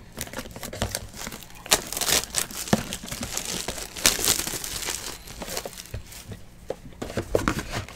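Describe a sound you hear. Plastic wrap crinkles and tears as a box is unwrapped.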